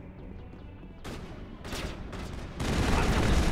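Laser gunfire crackles in quick bursts.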